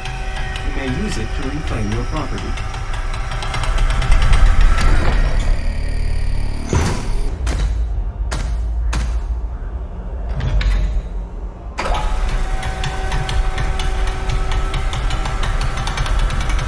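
A deep mechanical hum drones steadily.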